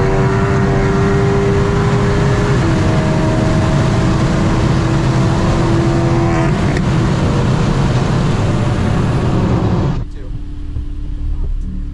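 Tyres and wind roar steadily from inside a car moving fast on a highway.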